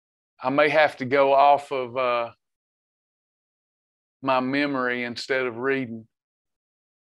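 A middle-aged man speaks cheerfully through a microphone on an online call.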